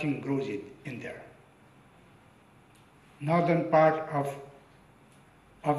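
An elderly man speaks slowly and deliberately into a microphone, with pauses.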